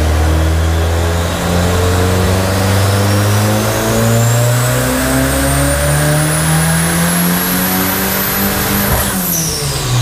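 A car engine revs loudly, its pitch climbing steadily higher.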